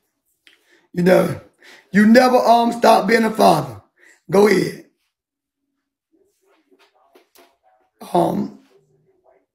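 A middle-aged man speaks with animation into a phone microphone.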